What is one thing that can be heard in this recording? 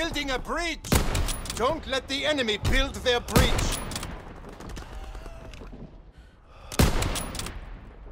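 A rifle fires sharp, loud shots now and then.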